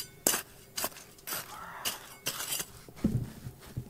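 A small trowel scrapes through dry gravelly soil.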